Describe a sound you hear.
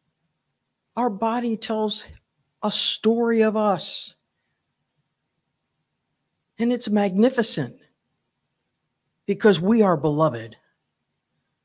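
A middle-aged woman speaks calmly into a microphone, pausing between phrases.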